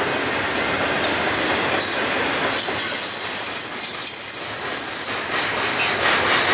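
A freight train rumbles past close by with clattering wheels on the rails.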